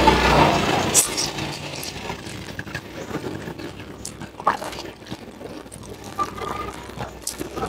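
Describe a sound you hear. Crisp vegetable stems snap between fingers close to a microphone.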